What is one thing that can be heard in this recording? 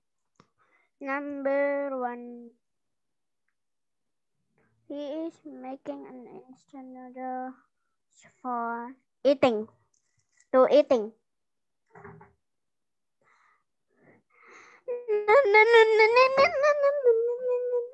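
A young woman speaks slowly and clearly over an online call.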